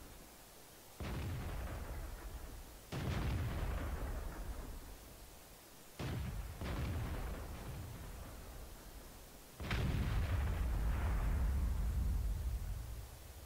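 A heavy gun fires with loud booming blasts that rumble away.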